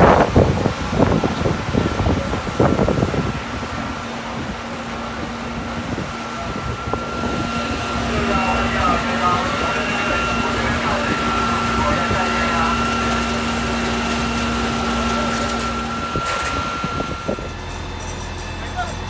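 A fire truck engine idles steadily nearby.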